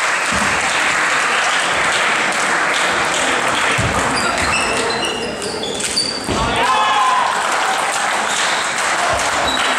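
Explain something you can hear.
Table tennis balls click against paddles and tables.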